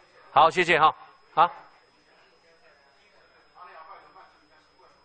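A middle-aged man speaks into a microphone in a large echoing hall.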